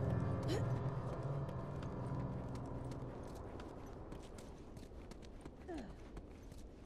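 Footsteps crunch softly over rough ground.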